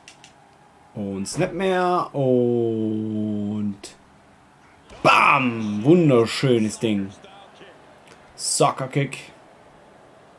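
A young man talks loudly and with animation into a close microphone, drawing out some words.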